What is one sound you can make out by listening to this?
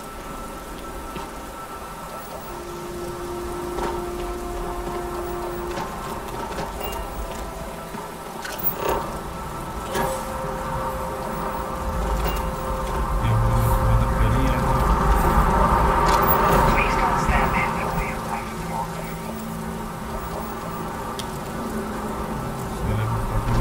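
Footsteps crunch on rocky ground.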